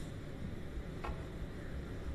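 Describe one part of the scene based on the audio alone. A snooker cue taps a ball.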